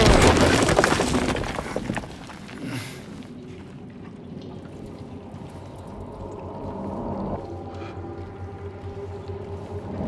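Keyboard keys click softly under typing fingers.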